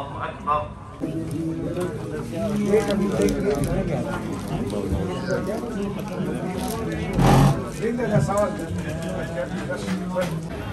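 A crowd of men and boys chatter all around.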